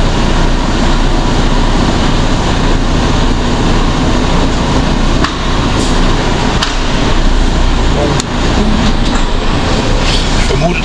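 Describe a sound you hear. A heavy diesel truck engine drones, heard from inside the cab.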